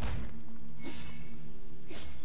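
A fiery blast bursts with a loud whoosh.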